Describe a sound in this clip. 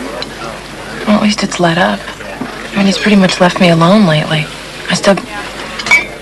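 A young woman speaks softly and calmly nearby.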